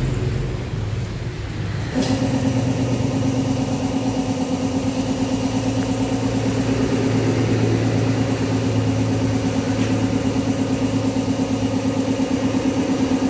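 A motorcycle engine idles close by, then grows louder with a rapid, steady putter.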